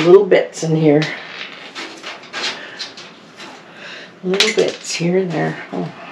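An elderly woman talks calmly close by.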